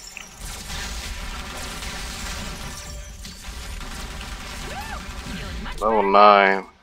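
Explosions and energy blasts rumble and crackle in a fight.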